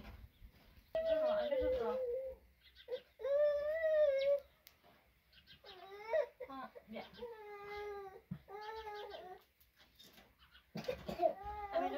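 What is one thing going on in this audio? A young child cries loudly nearby.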